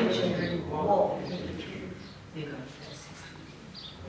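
A woman reads aloud calmly through a microphone in a room with some echo.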